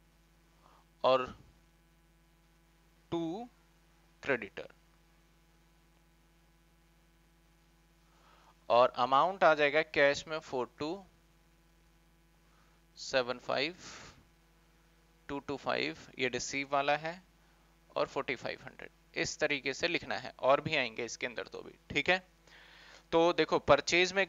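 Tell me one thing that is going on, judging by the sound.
A man speaks close to a microphone, explaining calmly in short bursts with pauses.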